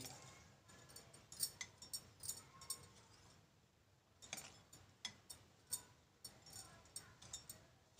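A metal spoon clinks and scrapes against a glass bowl while mixing a dry crumbly mixture.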